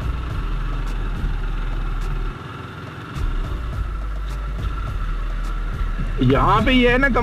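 A motorcycle engine rumbles up close, easing off briefly and then pulling again.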